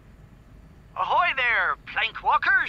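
A man's voice speaks cheerfully through a tape recorder.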